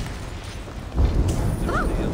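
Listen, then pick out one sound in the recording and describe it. A loud magical blast whooshes and rumbles.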